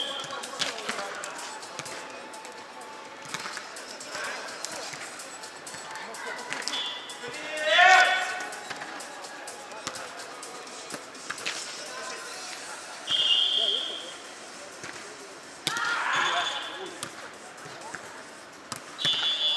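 A volleyball is struck with hands, echoing in a large hall.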